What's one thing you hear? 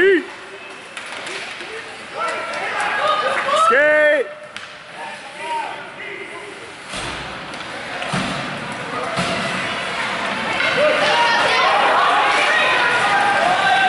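Spectators shout and cheer in an echoing rink.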